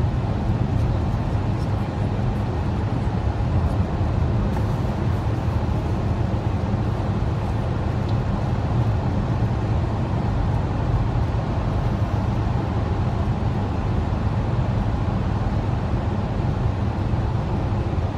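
A car's engine hums steadily inside the cabin.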